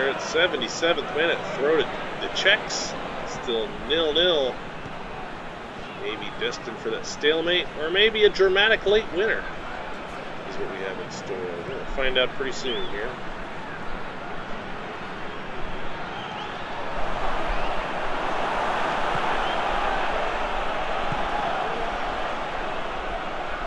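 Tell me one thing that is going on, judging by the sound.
A large stadium crowd murmurs and then swells into a loud roar.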